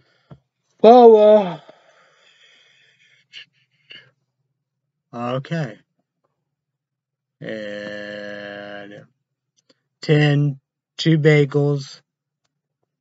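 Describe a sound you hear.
A young man sings loudly in short bursts, up close.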